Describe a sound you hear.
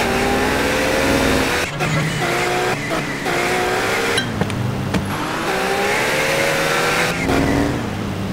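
A motorcycle engine drones close by.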